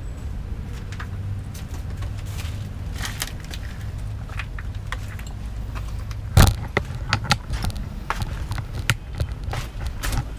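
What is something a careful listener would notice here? Footsteps crunch on loose debris close by.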